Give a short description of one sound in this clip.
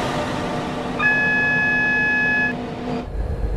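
A train horn blares for a moment.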